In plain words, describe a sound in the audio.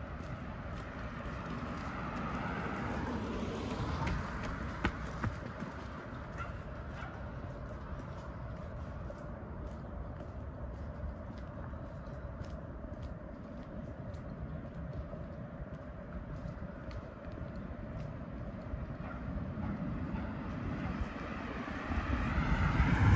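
Footsteps slap on pavement at a steady jogging pace.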